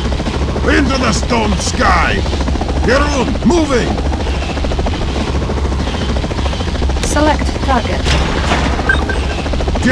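A helicopter's rotor thrums steadily.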